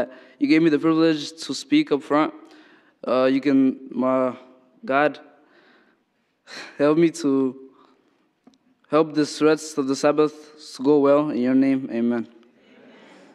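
A young man speaks calmly into a microphone in a large echoing hall.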